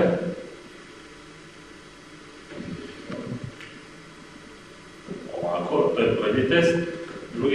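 A middle-aged man speaks calmly nearby in a room with a slight echo.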